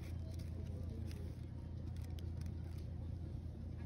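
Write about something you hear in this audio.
A paper wrapper crinkles as it is unfolded.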